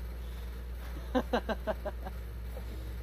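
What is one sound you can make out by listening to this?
A teenage boy laughs close by.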